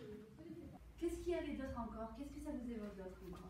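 A woman speaks calmly to a group in a room.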